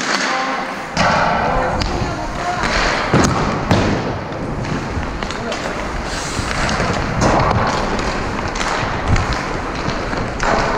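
Skate blades scrape and carve on ice.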